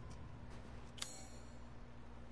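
A menu clicks open with a short chime.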